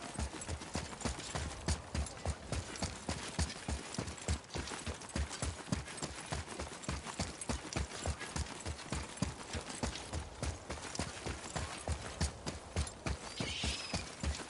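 Heavy footsteps thud quickly and steadily on stone.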